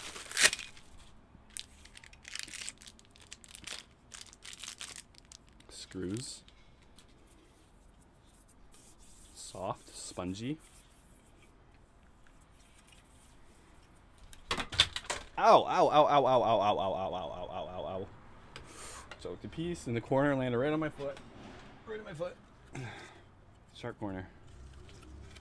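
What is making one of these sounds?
Plastic packaging crinkles and taps in a man's hands.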